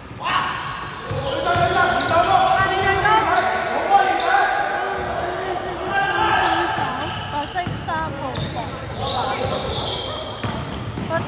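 Young men shout to each other across an echoing hall.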